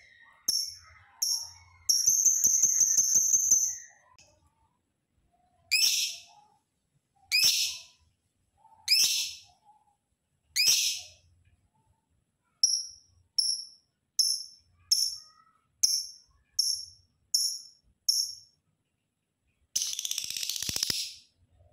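A lovebird chirps and trills loudly, close by, in sharp repeated bursts.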